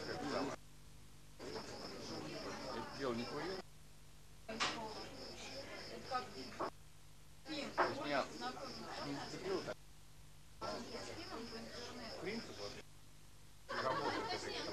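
A crowd chatters nearby, heard in short bursts.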